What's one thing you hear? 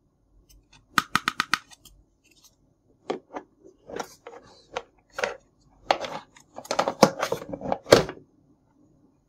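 Plastic parts click and clack as they are handled.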